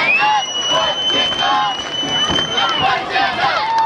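A referee's whistle blows in a long, shrill blast.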